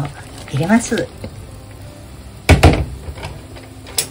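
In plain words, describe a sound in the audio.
Noodles splash into a pot of water.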